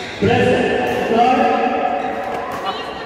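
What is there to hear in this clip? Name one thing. A young man calls out loudly in an echoing hall.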